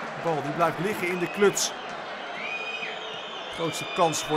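Fans whistle loudly from the stands.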